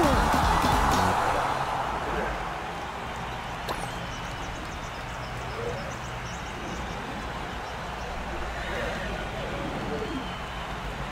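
Cheerful game music plays throughout.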